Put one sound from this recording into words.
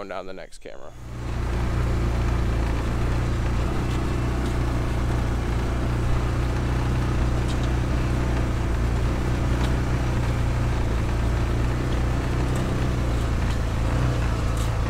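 A vehicle engine rumbles steadily nearby.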